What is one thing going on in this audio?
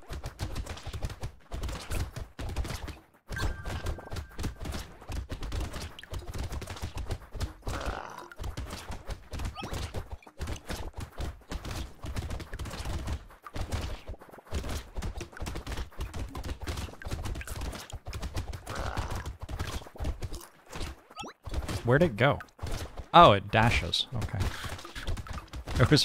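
Rapid game shots and hit sounds clatter without pause.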